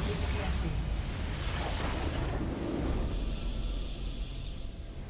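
A loud crashing explosion bursts and rumbles.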